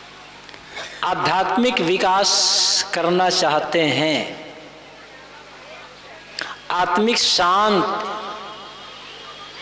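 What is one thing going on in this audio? An elderly man chants slowly into a microphone, heard through a loudspeaker.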